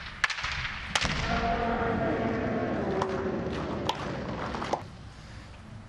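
Swordsmen shout loud, drawn-out battle cries in a large echoing hall.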